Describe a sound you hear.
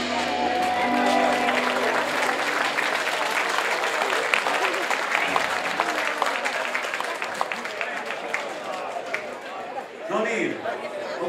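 A large crowd chatters outdoors.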